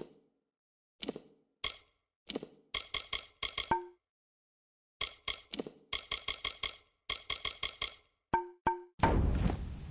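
Short menu blips chime in quick bursts.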